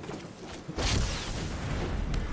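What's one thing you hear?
A magical whoosh and crackle sweeps across as glowing streaks strike.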